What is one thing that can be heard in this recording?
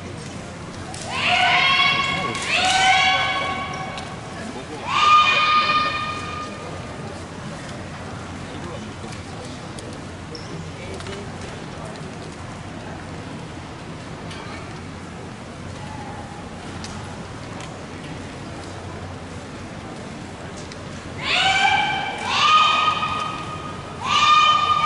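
Young women let out long, sharp shouts that echo through a large hall.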